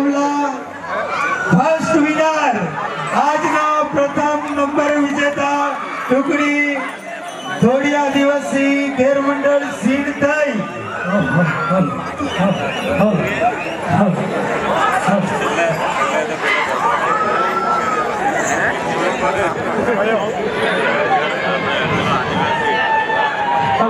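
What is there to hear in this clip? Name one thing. Drums beat steadily among the crowd.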